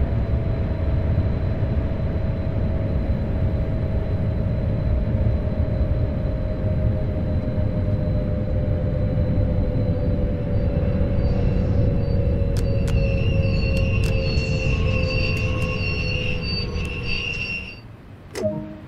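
A train rumbles heavily along the rails.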